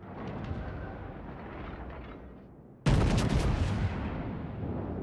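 Shells explode in water with deep booms.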